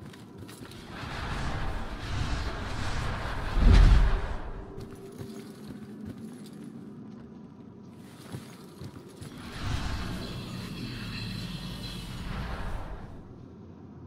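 A ghostly rushing whoosh swells and fades.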